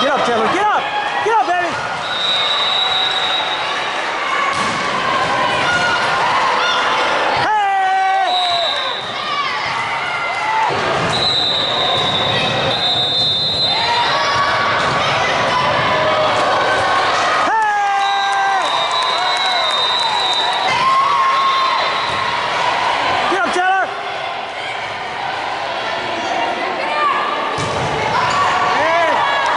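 Young women call out and shout to each other in a large echoing hall.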